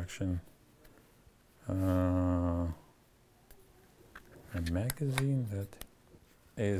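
A man speaks calmly and close by, in drawn-out bursts.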